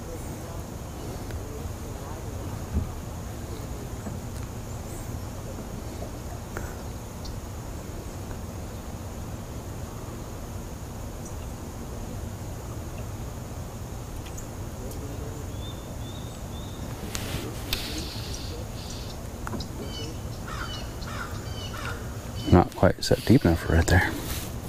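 A fishing reel clicks as a man winds in line.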